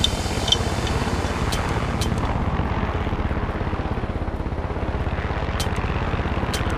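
Helicopter rotor blades chop steadily and rapidly, close by.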